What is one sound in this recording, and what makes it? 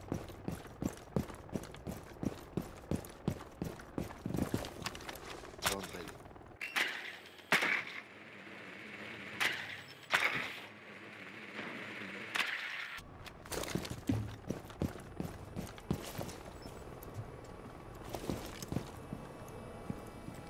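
Quick footsteps thud on a hard floor in an echoing space.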